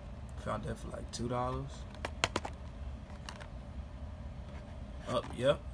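A plastic blister package crackles and clicks as it is handled and turned over.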